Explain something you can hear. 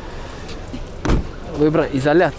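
A car trunk lid slams shut.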